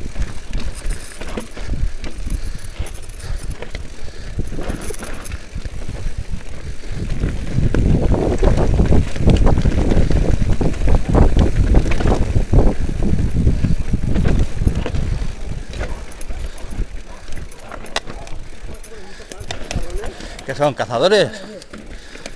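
Bike tyres rattle and crunch over a rough dirt trail.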